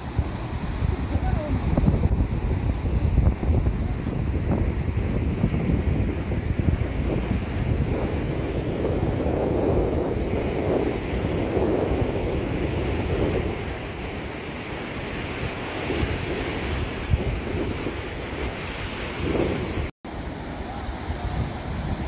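Sea waves wash and splash over rocks close by.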